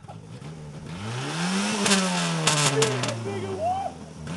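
Car tyres screech and scrub on pavement.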